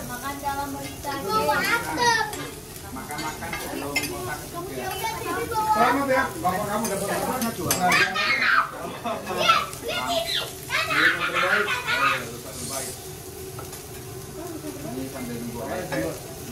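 Metal spatulas scrape and clink on a hot griddle.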